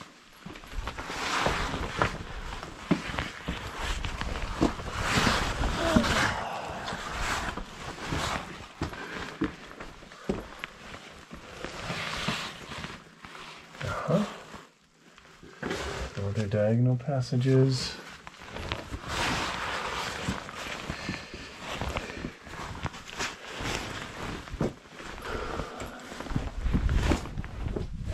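Clothing scrapes and rustles against rock close by.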